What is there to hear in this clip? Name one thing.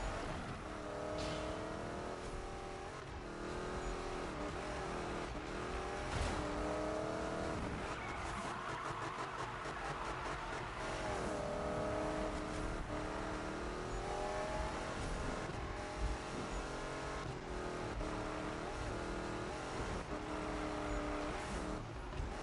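A race car engine roars, revving up and dropping as it shifts gears.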